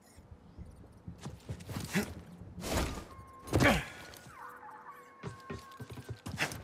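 Footsteps scuff and thud on stone.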